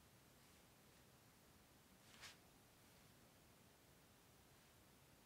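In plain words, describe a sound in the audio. A brush swishes softly across paper.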